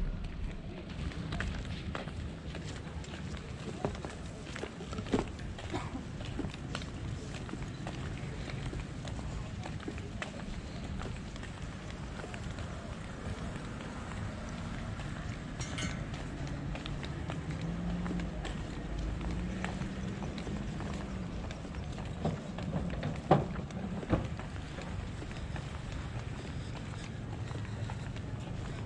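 Footsteps tread on a paved walkway.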